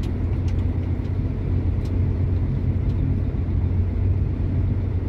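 Wind rumbles steadily through a hollow, echoing tunnel.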